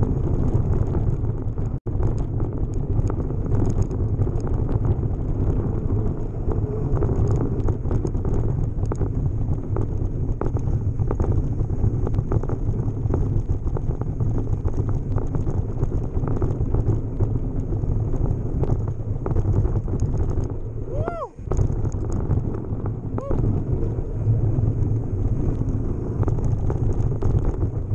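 Bicycle tyres roll fast over a dirt trail.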